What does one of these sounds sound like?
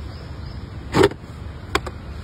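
A plastic lid pops off a bucket.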